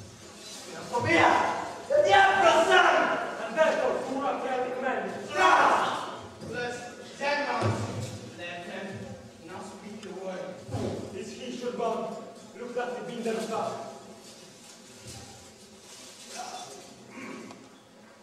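A man declaims loudly and with animation in an echoing hall.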